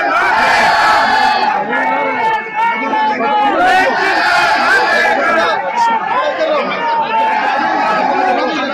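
A man chants loudly close by.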